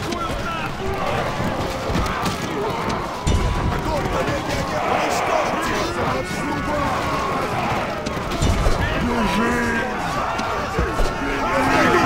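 Swords and shields clash and clang in a large battle.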